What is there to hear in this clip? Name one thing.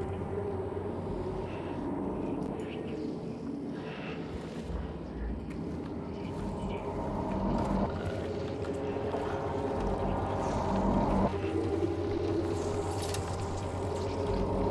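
Keys click softly on a keyboard.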